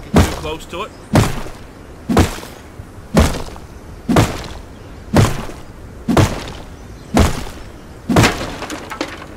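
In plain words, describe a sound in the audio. A stone strikes a tree trunk with regular, dull knocks.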